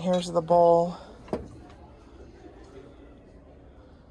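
A ceramic plate clinks as it is lifted from a shelf.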